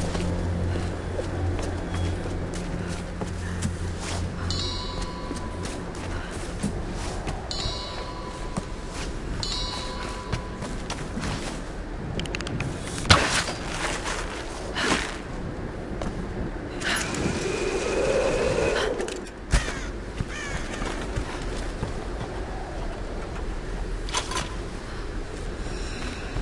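Footsteps crunch over stone and wooden boards.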